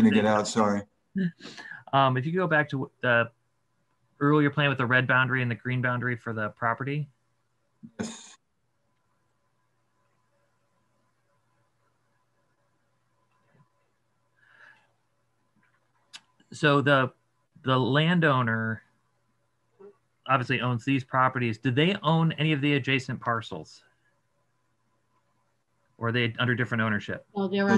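An older man speaks calmly over an online call, with pauses.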